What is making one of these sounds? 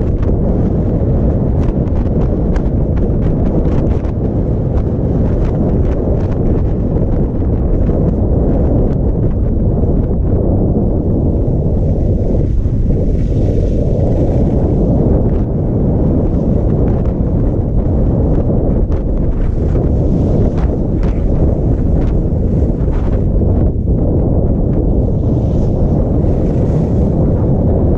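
Wind rushes loudly past a skier speeding downhill.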